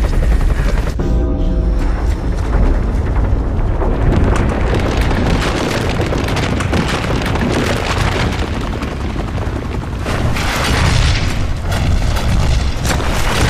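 A deep rumbling roar builds.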